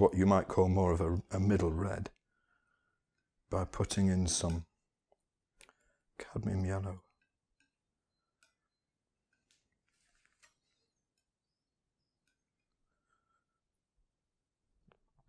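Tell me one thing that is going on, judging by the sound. A palette knife scrapes and taps softly against glass while mixing paint.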